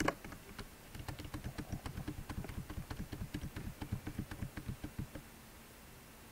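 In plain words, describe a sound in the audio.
Electronic game sound effects rattle in quick, even bursts.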